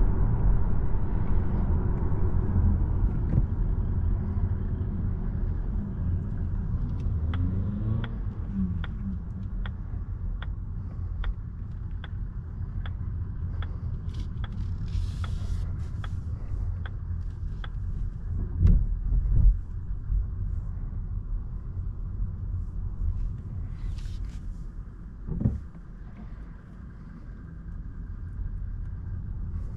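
Tyres rumble steadily on the road inside a moving car.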